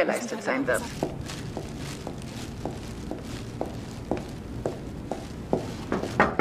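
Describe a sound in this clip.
Footsteps click steadily on a hard floor.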